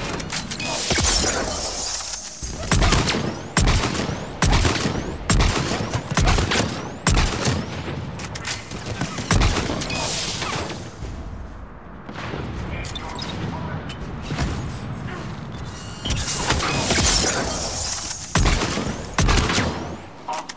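Loud gunshots fire one after another, with sharp cracks that ring out.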